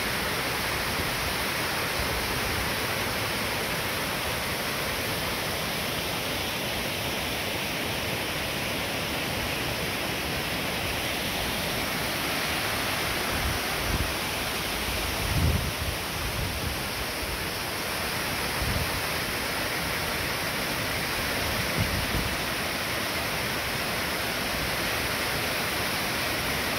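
Water rushes and splashes steadily over a small weir and rocks, outdoors.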